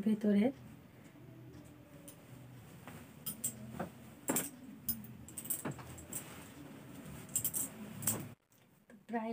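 Fabric rustles and swishes as it is handled.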